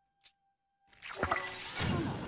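A bright magical whoosh swells up.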